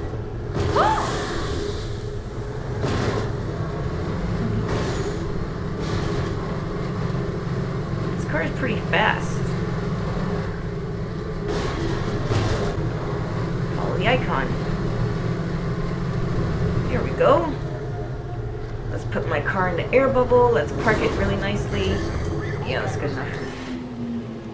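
A vehicle engine rumbles steadily as it drives.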